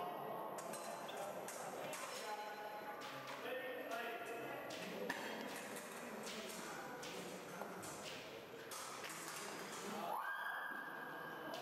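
Fencers' feet stamp and shuffle on the floor.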